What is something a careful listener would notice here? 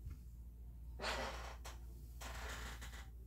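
Clothing rustles as a man moves his arms.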